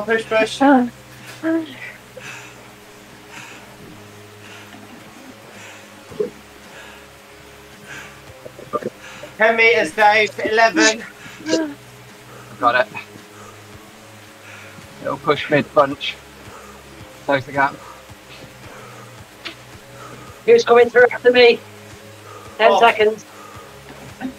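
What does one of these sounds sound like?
A man talks into a microphone close up in short, lively bursts.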